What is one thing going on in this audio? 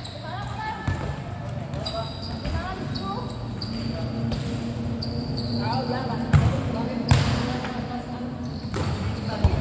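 Young men call out to each other from across the court.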